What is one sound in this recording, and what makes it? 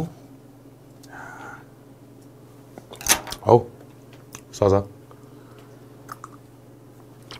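A man chews and slurps food close to a microphone.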